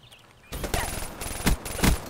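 An automatic rifle fires a burst.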